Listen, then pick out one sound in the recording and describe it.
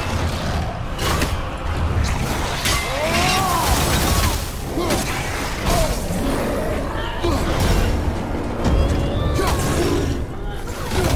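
Blades clash and strike in a fast fight.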